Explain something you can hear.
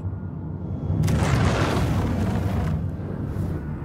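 A whooshing rush swells and fades as the craft swoops low.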